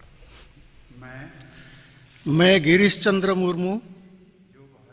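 A man reads out an oath into a microphone.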